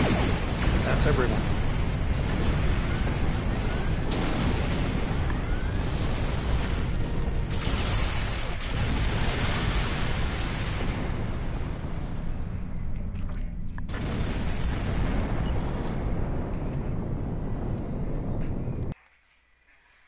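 Loud rumbling blasts and roaring engines fill a space battle, then cut off suddenly.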